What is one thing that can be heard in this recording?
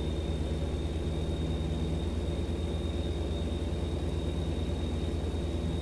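A truck engine rumbles steadily at cruising speed.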